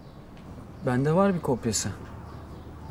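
A man speaks briefly and quietly, close by.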